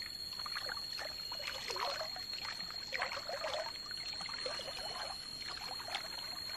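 Water sloshes and splashes as a pan is swirled in a shallow stream.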